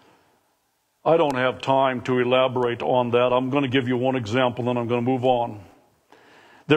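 An older man speaks calmly through a microphone in a large room.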